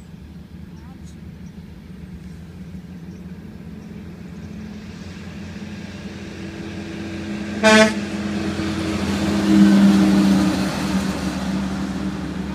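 Large trucks rumble past on a road, growing louder.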